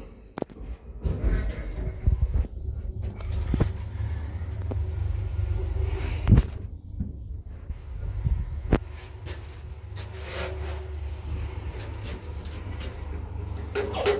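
A traction elevator car rumbles and hums as it travels.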